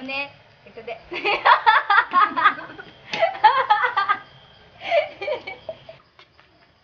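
A young woman laughs loudly close by.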